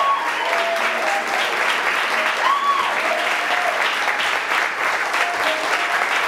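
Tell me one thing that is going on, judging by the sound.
An audience claps and applauds loudly throughout.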